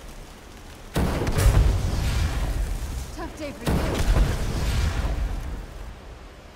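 A crackling magic blast bursts loudly and roars.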